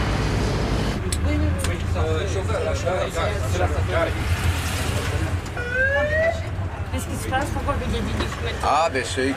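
A bus engine rumbles steadily from inside the bus.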